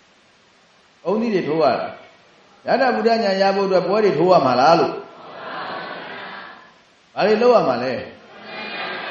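A man speaks calmly into a microphone, in a chanting voice, with pauses.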